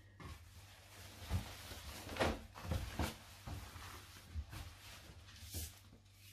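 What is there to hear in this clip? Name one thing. Fabric rustles and flaps as a sheet of cloth is spread out and smoothed by hand.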